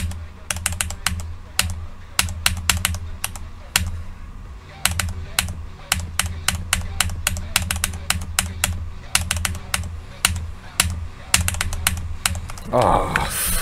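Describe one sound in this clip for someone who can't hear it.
Fast electronic music plays with a pounding beat.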